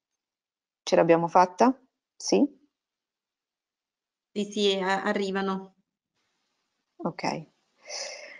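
A woman speaks calmly through an online call, with pauses.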